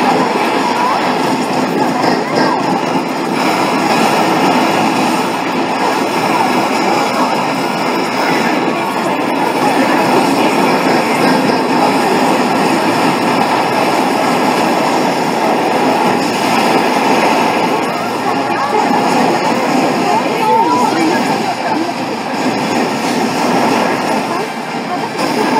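Gunfire and explosions boom from a game's loudspeakers.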